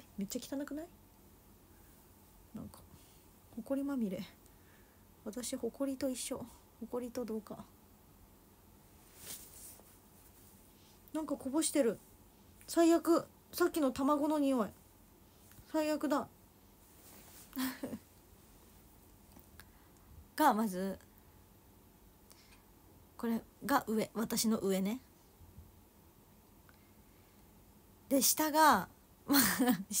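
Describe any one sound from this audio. A young woman talks casually close by, in short bursts with pauses.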